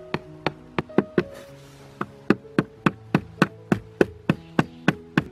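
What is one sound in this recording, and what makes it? A hammer strikes a metal stake in quick, ringing blows.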